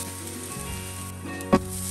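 A spoon scrapes against a metal pan.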